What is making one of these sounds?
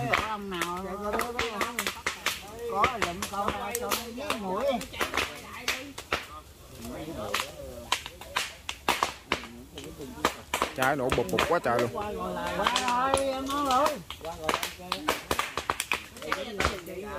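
A fire crackles and pops sharply in burning bamboo.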